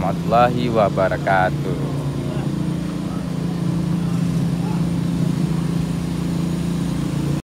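A bus engine idles with a steady low rumble close by.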